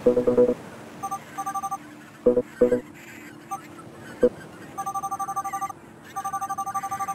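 Quick electronic beeps chirp rapidly in bursts.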